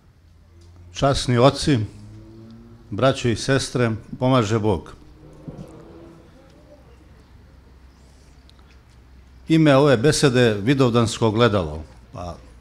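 A middle-aged man reads aloud through a microphone in short, forceful phrases.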